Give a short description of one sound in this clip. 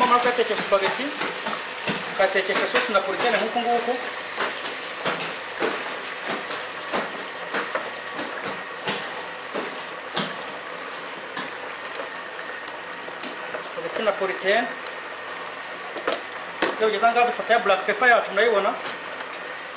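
Sauce bubbles and simmers in a pan.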